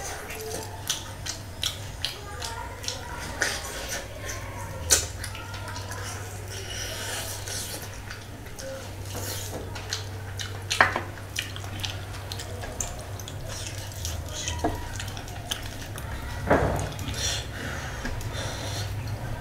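Fingers squelch through soft rice and curry.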